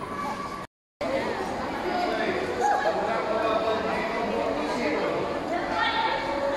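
A crowd of children chatters and murmurs.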